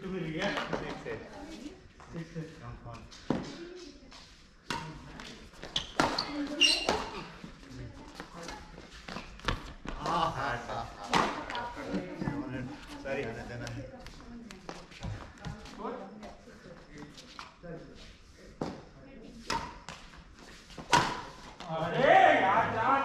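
Men talk and call out across the hall.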